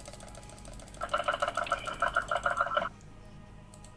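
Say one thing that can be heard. Magic spell effects ring out in a game.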